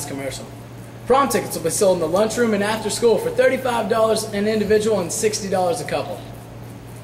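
A young man talks calmly close by.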